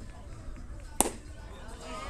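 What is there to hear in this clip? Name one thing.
A bat strikes a baseball with a sharp crack.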